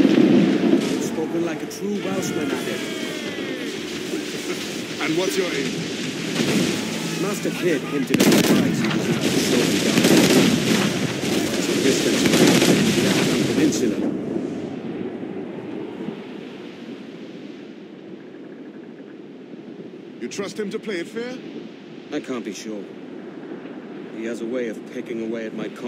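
Waves splash and rush against a ship's hull.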